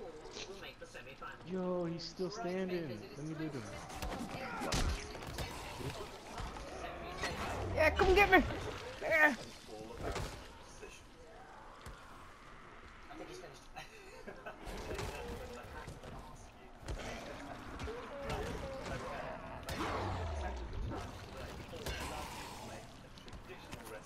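A blade hacks into flesh with heavy, wet thuds.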